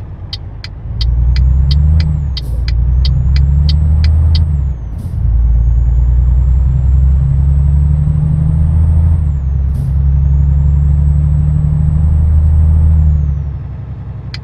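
A truck engine revs up loudly, dropping in pitch with each gear change.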